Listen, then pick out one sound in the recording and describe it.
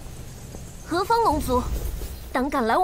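A young man speaks sternly and close.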